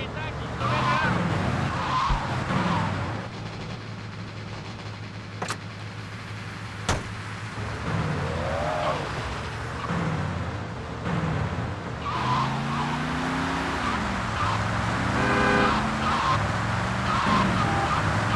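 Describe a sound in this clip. A car engine hums steadily as a taxi drives along.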